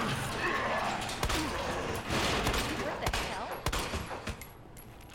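A pistol fires several sharp, loud shots.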